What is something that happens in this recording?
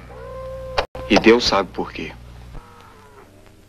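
A young man speaks sharply, close by.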